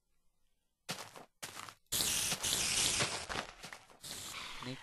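A giant spider hisses and chitters.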